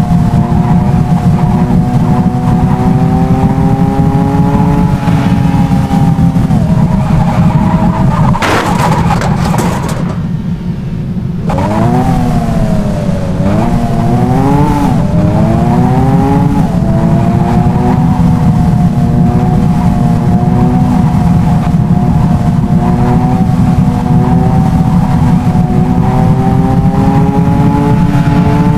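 A car engine roars steadily, its pitch dipping and climbing again as gears change.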